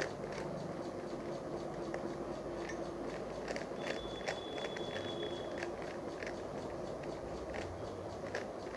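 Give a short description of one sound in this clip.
A puzzle cube clicks and clatters as it is twisted quickly.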